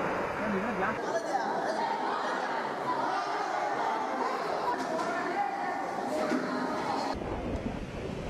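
A crowd of men, women and children chatters nearby.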